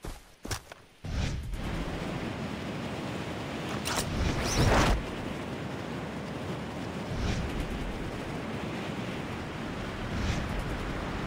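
Wind rushes past a body falling through the air.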